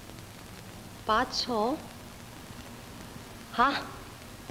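A woman asks a short question in a calm voice.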